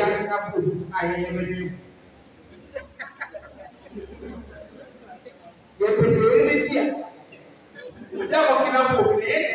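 A man preaches with animation through a microphone and loudspeakers in an echoing hall.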